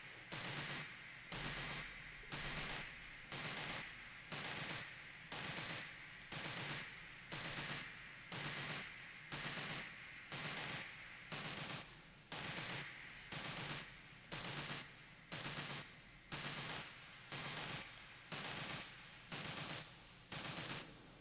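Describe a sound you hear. An electronic drum beat plays in a steady, repeating loop.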